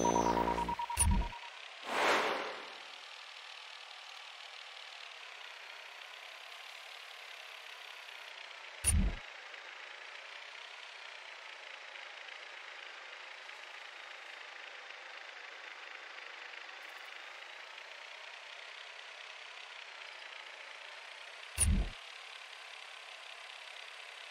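A small drone whirs steadily as it flies.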